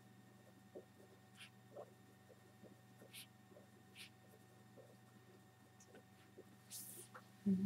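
A marker squeaks and scratches faintly on paper.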